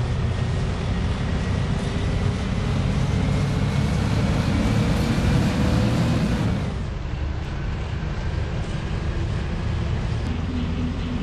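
A bus engine hums and rumbles steadily, then eases off to a quieter drone.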